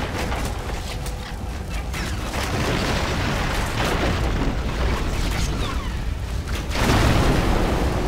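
Fire crackles and roars on burning ships.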